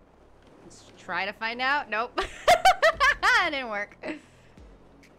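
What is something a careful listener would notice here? A young woman laughs and squeals loudly into a microphone.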